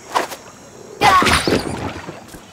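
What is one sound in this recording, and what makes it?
Water splashes loudly as something plunges in.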